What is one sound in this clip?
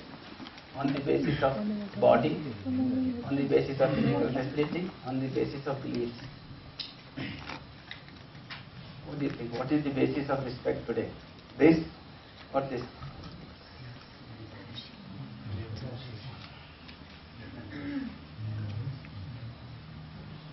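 A middle-aged man lectures calmly in a room with some echo.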